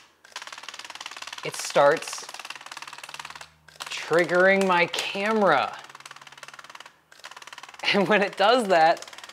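A small motor whirs with rapid clicking as a strip of film is fed through.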